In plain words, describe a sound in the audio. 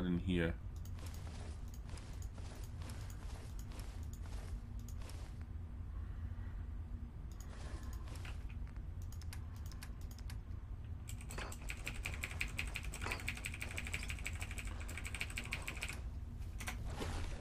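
Quick clicks tick as a menu is scrolled.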